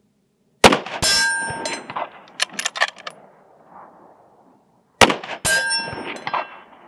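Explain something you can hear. A steel target rings with a metallic clang after each shot.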